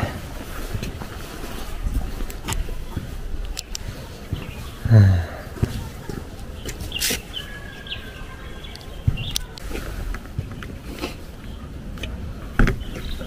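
Footsteps scuff on concrete.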